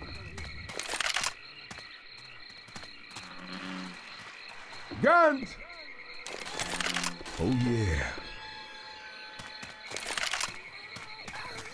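Gunshots ring out now and then.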